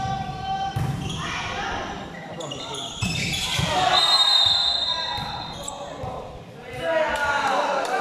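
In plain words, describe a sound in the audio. A crowd of young spectators cheers and shouts in a large echoing hall.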